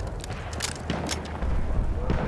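A rifle's metal bolt clicks and clacks.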